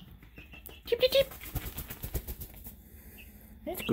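A hen flaps its wings noisily.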